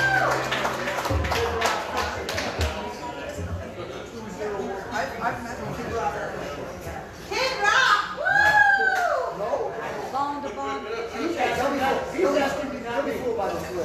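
An elderly man sings into a microphone through a loudspeaker.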